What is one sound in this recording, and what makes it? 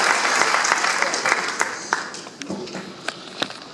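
A pianist plays a few notes.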